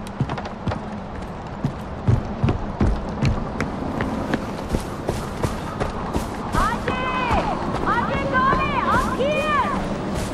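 Footsteps crunch on grass and rock.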